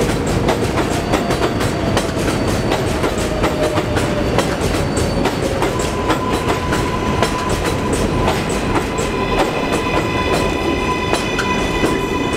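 Train brakes squeal with a steady high whine.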